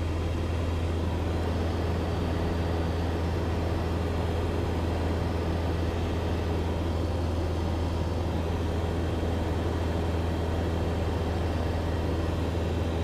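A small plane's engine drones steadily inside the cabin.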